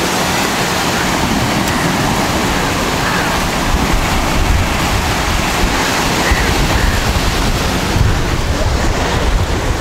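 Waves wash onto the shore.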